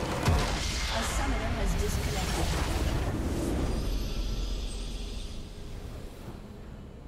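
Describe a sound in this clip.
A loud explosion booms and slowly fades.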